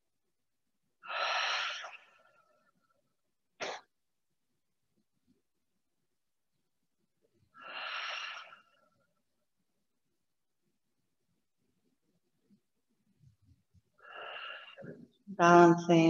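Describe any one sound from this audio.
A woman breathes out slowly and audibly.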